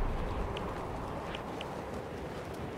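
Soft menu clicks blip a few times.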